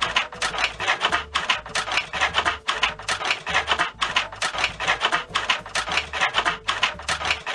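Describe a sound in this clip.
Scissors snip repeatedly through paper.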